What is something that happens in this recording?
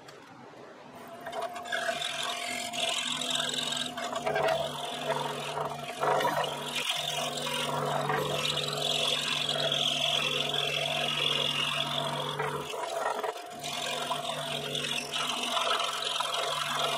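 A scroll saw hums and buzzes steadily as it cuts through a block.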